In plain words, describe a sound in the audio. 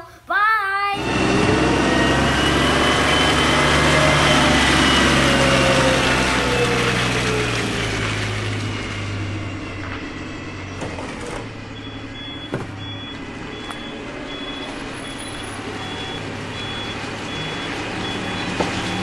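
A heavy machine rumbles steadily.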